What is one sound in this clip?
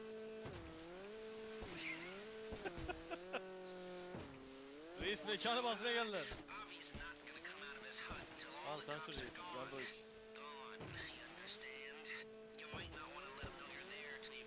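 A jet ski engine hums and revs up and down.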